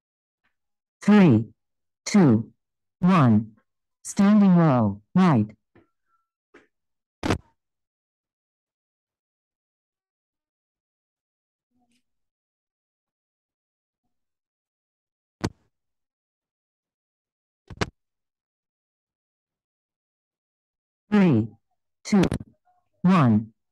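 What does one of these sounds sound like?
A woman calls out short exercise cues over an online call.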